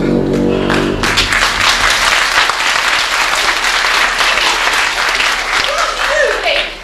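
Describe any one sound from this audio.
An audience applauds and cheers loudly in a large echoing hall.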